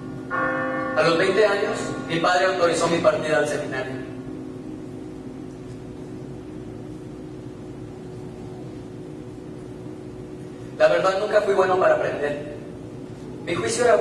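A young man speaks with animation through a microphone, in a large echoing hall.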